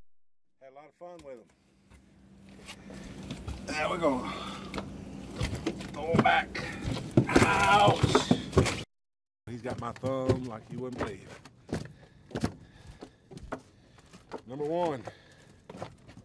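An older man talks outdoors.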